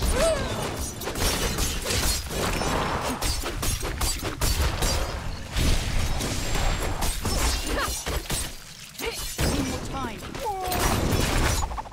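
Weapons strike and slash in a fast fight, with sharp impacts.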